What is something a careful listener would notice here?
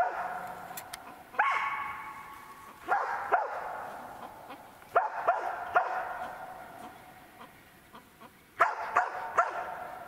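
Small birds chirp repeatedly in the trees nearby.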